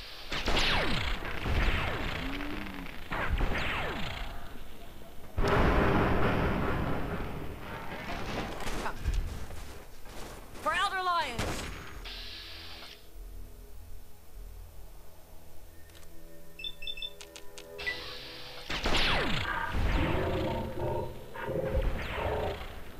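Energy weapon blasts explode against a metal robot with a crackling roar.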